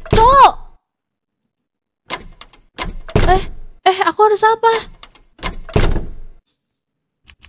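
A young woman talks with animation into a microphone, in short bursts.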